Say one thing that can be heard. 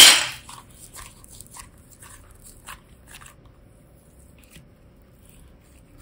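Soft clay squishes between fingers.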